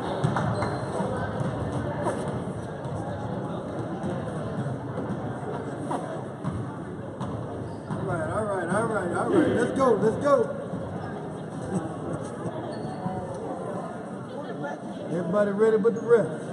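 A crowd chatters in a large echoing gym.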